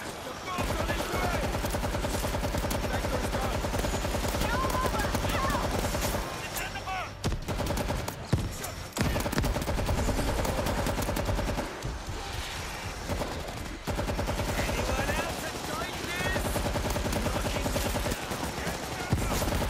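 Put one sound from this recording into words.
Automatic rifles fire in rapid bursts.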